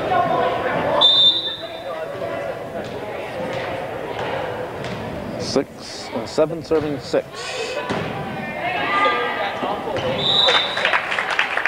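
A referee blows a sharp whistle.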